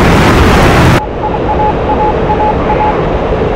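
A jet fighter's engine rumbles, muffled, from inside the cockpit.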